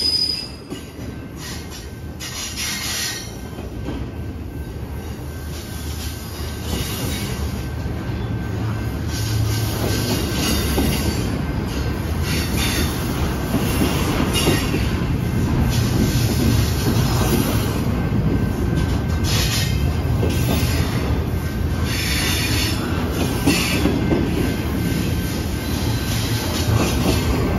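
Steel wheels clatter and squeal on the rails.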